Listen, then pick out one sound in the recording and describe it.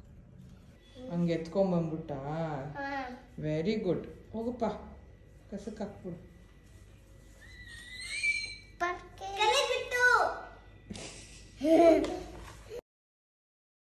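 A small child talks in a high voice, close by.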